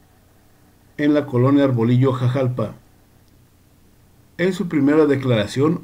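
A young man speaks close to the microphone with animation.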